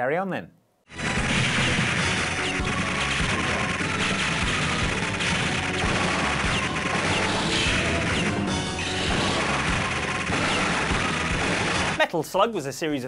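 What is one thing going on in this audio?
Gunfire and explosions from a video game rattle on loudly.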